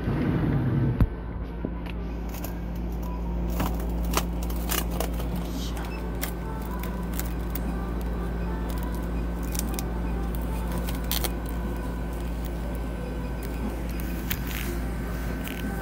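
Plastic wrapping crinkles and rustles under a hand.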